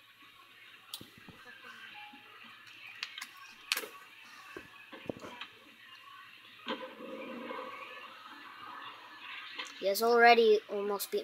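Skateboard wheels roll and clatter in a video game playing through television speakers.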